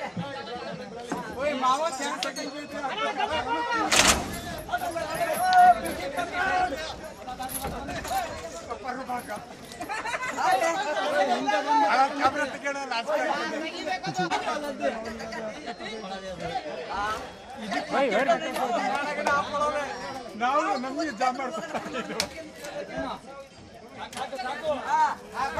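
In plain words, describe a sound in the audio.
A crowd chatters in the background.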